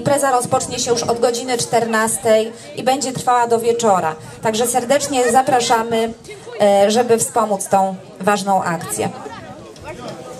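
A woman sings through a loudspeaker outdoors.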